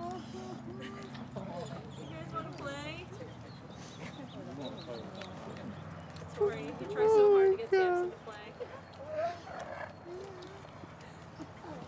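Two large dogs growl and snarl while play-fighting.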